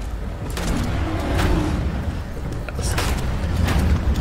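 A heavy gun fires loud single shots.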